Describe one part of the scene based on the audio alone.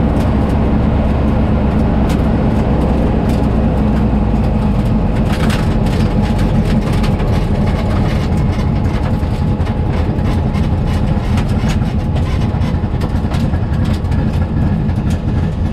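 A turbocharged air-cooled flat-four engine in a drag-racing Beetle rumbles, heard from inside the car.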